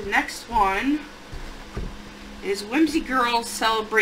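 A book is set down on a wooden table.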